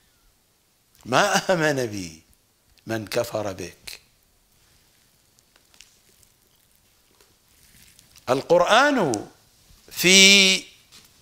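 An elderly man speaks calmly and with pauses into a close microphone.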